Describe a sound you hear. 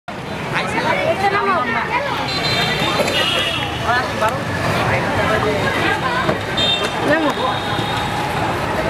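Several women chatter nearby outdoors.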